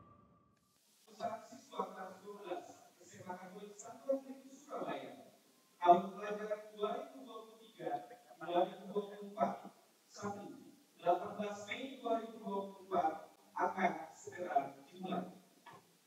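A young woman speaks calmly into a microphone, heard through loudspeakers.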